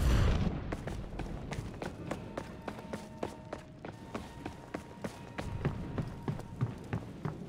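Footsteps patter on stone as a warrior runs.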